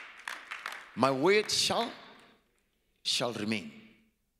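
A man preaches loudly through a microphone in an echoing hall.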